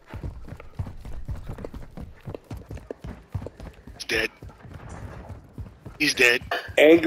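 Footsteps thud quickly on stone steps.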